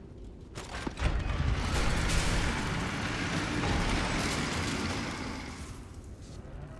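Heavy wooden doors creak and rumble open.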